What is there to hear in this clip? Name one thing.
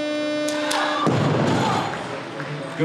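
A loaded barbell crashes down onto the platform.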